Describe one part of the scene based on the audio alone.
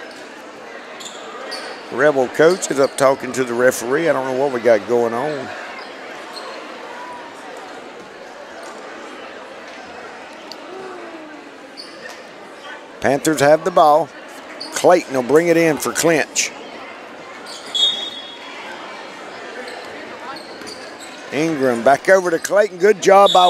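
A crowd murmurs steadily in a large echoing gym.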